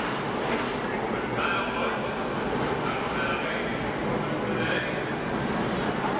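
Tyres squeal on the track.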